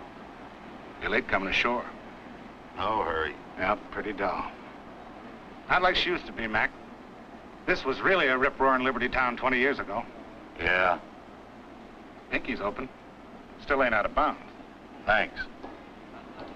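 A man speaks calmly and clearly.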